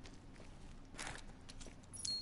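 A gunshot rings out once.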